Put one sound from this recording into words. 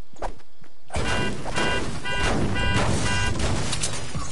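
A pickaxe strikes a car with metallic clanks.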